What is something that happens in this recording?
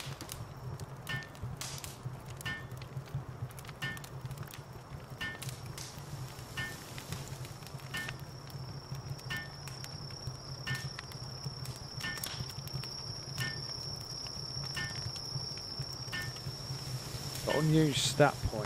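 A hammer knocks on wood in a steady, quick rhythm.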